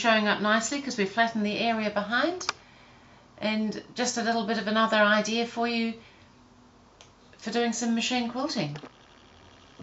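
An older woman speaks calmly and with animation, close by.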